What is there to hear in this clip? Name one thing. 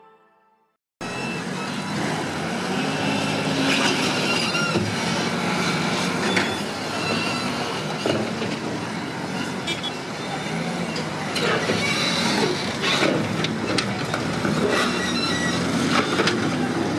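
A bulldozer engine rumbles steadily outdoors.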